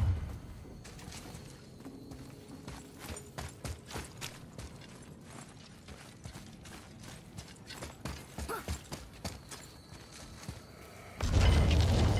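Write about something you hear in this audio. Heavy footsteps crunch on snowy ground.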